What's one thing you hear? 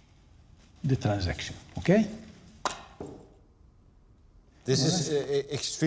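An elderly man speaks calmly and closely.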